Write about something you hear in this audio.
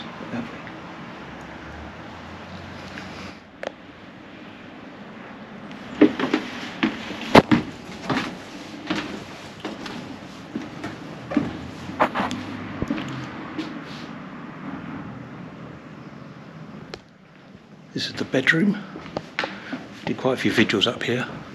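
A middle-aged man talks calmly and close up.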